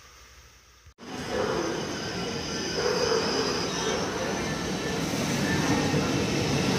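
A high-speed train approaches with a loud, rising rush of noise.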